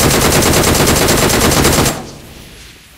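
Rapid automatic gunfire rattles from a rifle.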